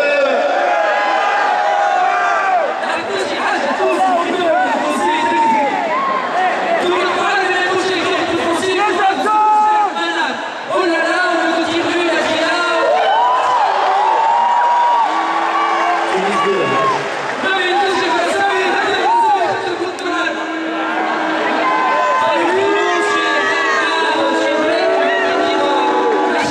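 A man sings loudly through a microphone over a loudspeaker.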